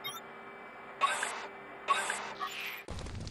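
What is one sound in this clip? Menu beeps chime briefly.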